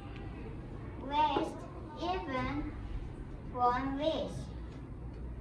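A young child speaks in short, lively phrases close by.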